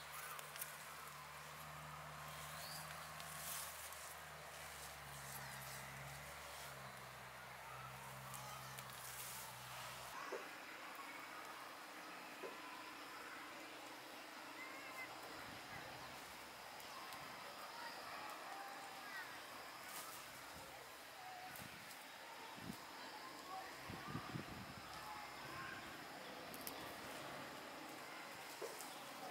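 Roots are pulled from the soil with a soft tearing and rustle of leaves.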